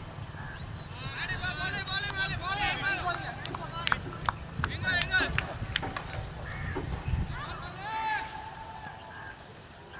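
Men call out to each other across an open field.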